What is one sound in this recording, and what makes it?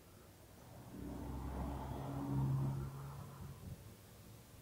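An elderly woman sobs softly.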